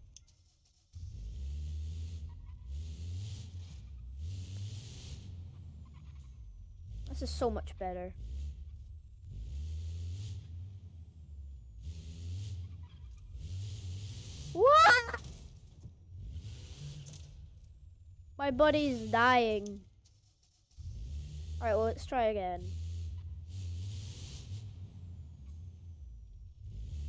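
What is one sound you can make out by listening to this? A kart engine drones and revs.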